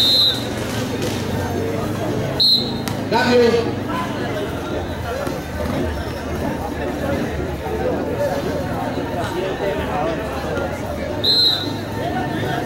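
A whistle blows in short sharp bursts.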